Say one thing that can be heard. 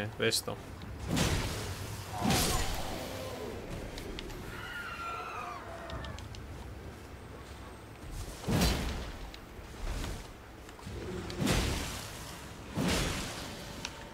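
Heavy weapon blows whoosh and thud in bursts.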